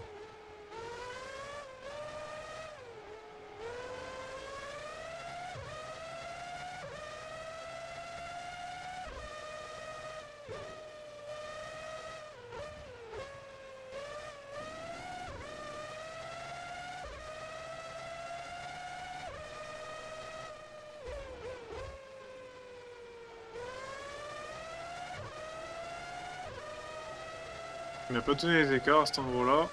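A racing car engine revs high and shifts through gears, rising and dropping in pitch.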